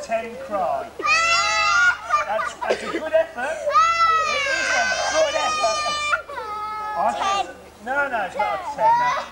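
Young children shout and squeal excitedly outdoors.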